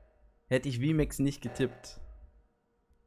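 A young man speaks with animation into a nearby microphone.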